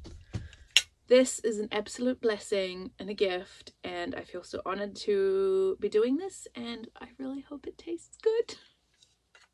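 A woman talks to the microphone nearby with animation.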